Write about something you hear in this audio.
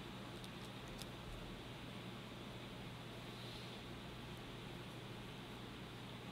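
A marker squeaks softly as it writes on paper.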